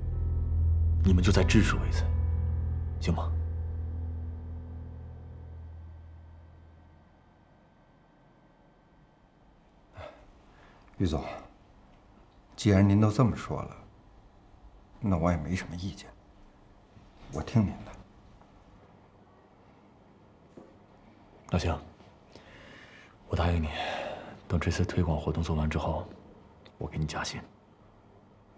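A young man speaks earnestly up close.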